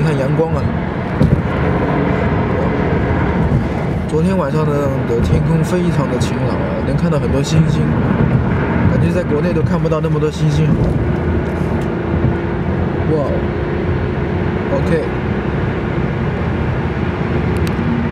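Wind rushes past the car.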